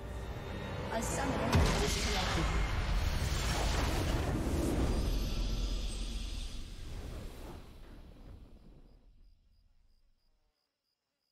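A triumphant game fanfare swells loudly and then fades away.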